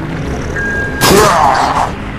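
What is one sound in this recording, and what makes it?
A zombie snarls and growls up close.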